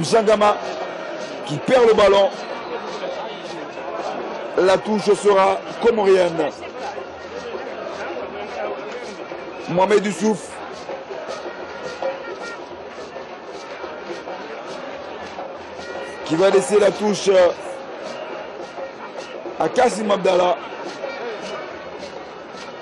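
A large crowd murmurs steadily in an open stadium.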